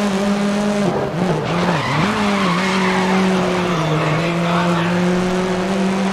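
Tyres squeal as a race car slides through a corner.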